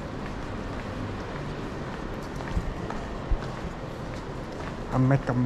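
Footsteps tap on a hard floor in a large echoing hall.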